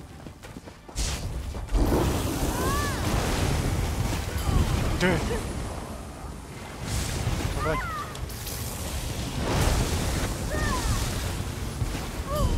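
Magic blasts whoosh and burst during a fight.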